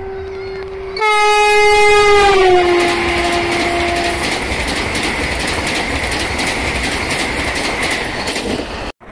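A high-speed train rushes past with a loud roar and rattle.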